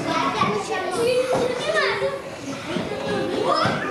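A young girl talks to another girl.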